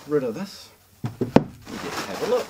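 A heavy box thumps down on a wooden table.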